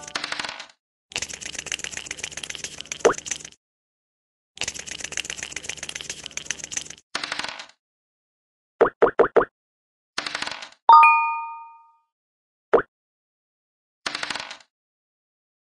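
Dice rattle as a board game app's rolling sound plays.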